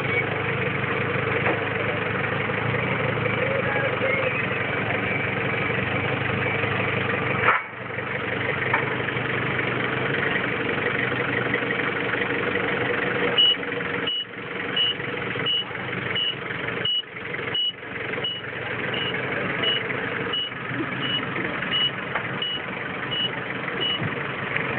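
A forklift engine hums steadily nearby.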